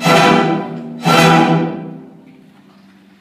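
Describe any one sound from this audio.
An orchestra plays two loud final chords in a large hall, ringing out briefly.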